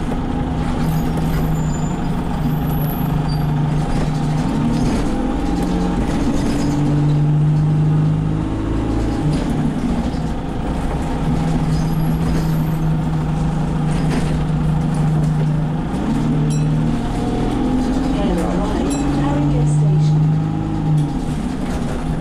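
A bus engine drones and hums steadily, rising and falling in pitch.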